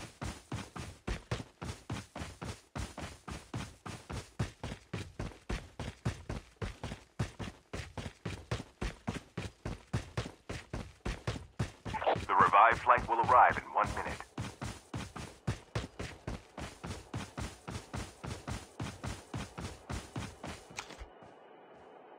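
Footsteps run quickly and steadily over grass.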